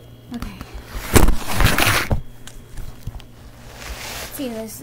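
Clothing rustles and scrapes close by.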